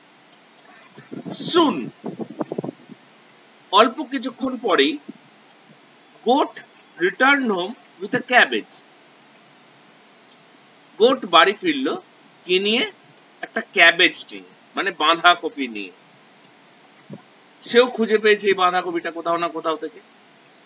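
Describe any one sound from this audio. A middle-aged man speaks calmly in short phrases, close to a microphone, with pauses between them.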